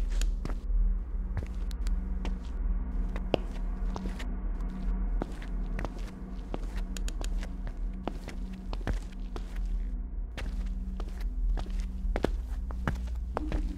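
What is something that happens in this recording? Footsteps tap on a hard floor at a walking pace.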